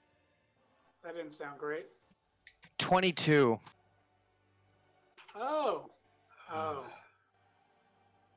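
A man speaks in short, calm phrases over an online call.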